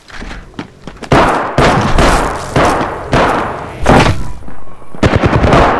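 Electric crackling zaps and buzzes.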